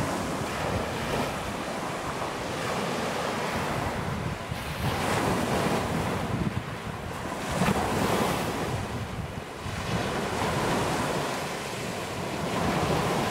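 Small waves break and wash up onto a pebble shore.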